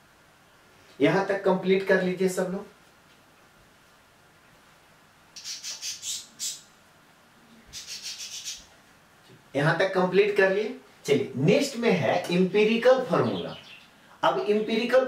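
A man speaks steadily and clearly into a close microphone, in short bursts with pauses.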